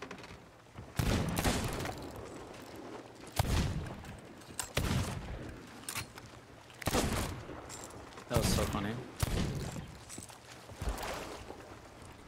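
Cannons fire with loud booming blasts.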